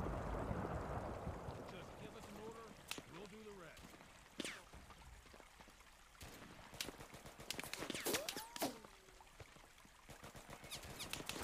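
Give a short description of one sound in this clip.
Gunshots crack repeatedly in quick bursts.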